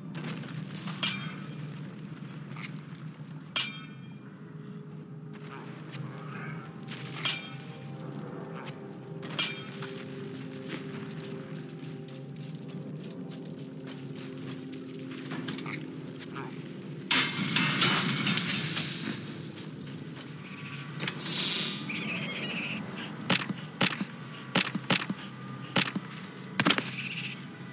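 Short clicks and chimes sound as game menus open and close.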